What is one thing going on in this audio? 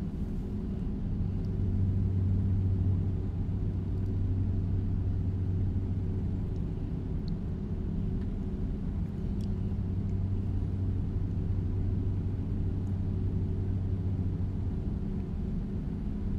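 Tyres hum on a highway.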